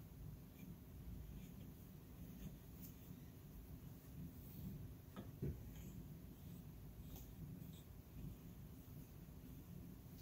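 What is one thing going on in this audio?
Wooden weaving cards clack softly as they are turned.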